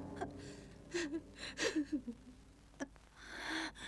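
A young woman moans weakly in pain.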